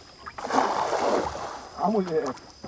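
A cast fishing net splashes down onto water.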